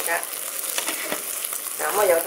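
A metal lid clinks onto a pan.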